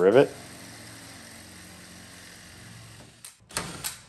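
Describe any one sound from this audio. A power drill whirs steadily, then stops.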